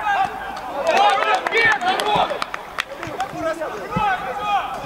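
Men shout and cheer outdoors.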